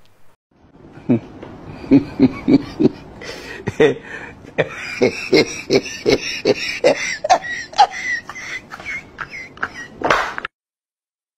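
A brush scrubs a shoe in quick, repeated strokes.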